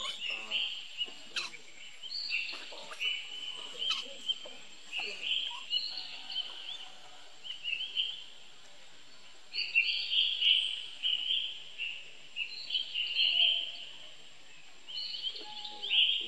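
A baby monkey squeaks and cries in high, shrill bursts.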